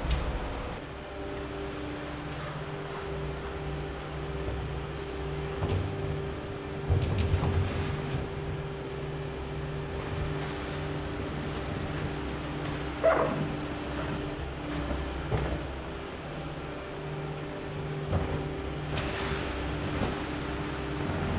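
A skid steer loader's engine runs and idles nearby.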